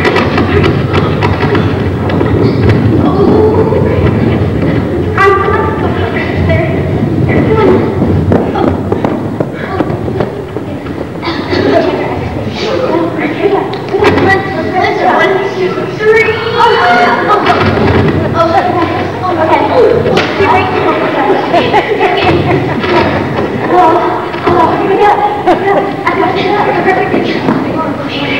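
A crowd of adults and children talks and chatters in a large echoing hall.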